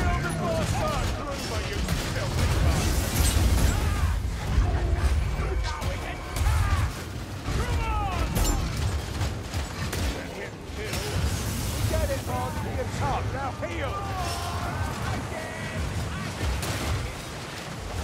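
Creatures snarl and growl.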